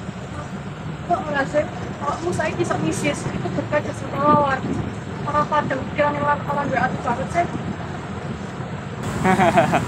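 A young woman talks outdoors.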